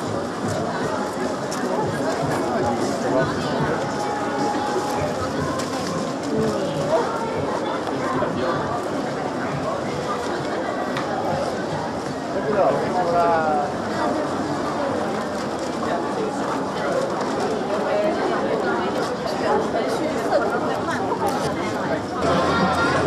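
A crowd chatters all around, close by and outdoors.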